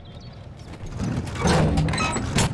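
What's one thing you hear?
Boots clank on a metal hull.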